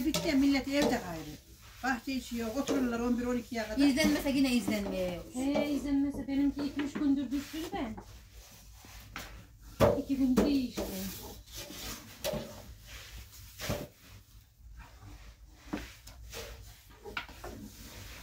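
Wooden rolling pins knock and roll on wooden boards.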